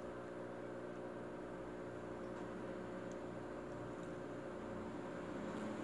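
A hand swishes gently through water.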